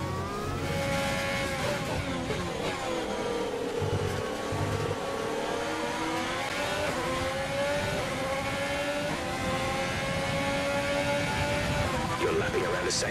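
A Formula One car's engine screams at high revs as it shifts up through the gears.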